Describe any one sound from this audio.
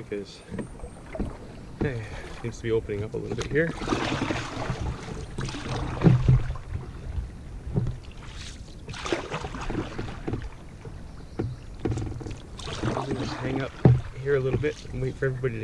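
A canoe paddle splashes and dips in the water.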